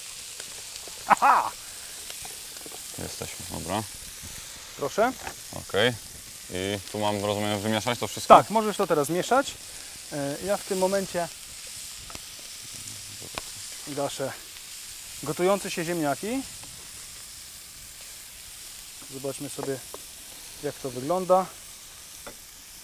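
A second man talks with animation.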